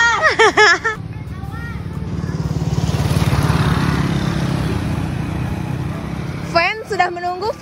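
A motorbike engine approaches, passes and fades.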